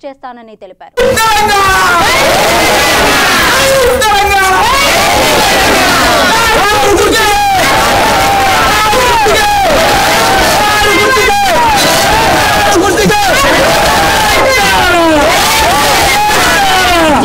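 A crowd of men and women shout slogans loudly outdoors.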